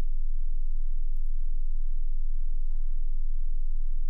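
A laptop lid snaps shut.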